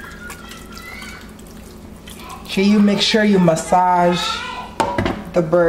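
Hands rub seasoning into raw poultry with soft, wet squelching.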